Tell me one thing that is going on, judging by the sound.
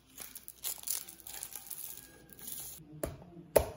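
A plastic cup is picked up with a short knock and rattle.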